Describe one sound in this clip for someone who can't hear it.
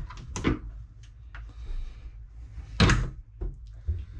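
A cabinet door swings shut with a wooden knock.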